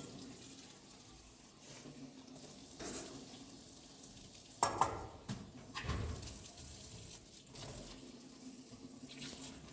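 Dishes clink and clatter in a metal sink.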